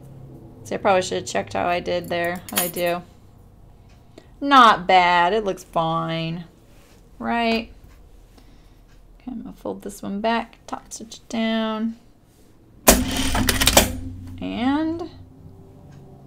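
A middle-aged woman talks calmly into a microphone.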